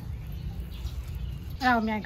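Liquid drips and trickles into a metal bowl.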